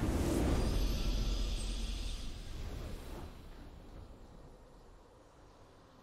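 A triumphant game victory fanfare swells and fades away.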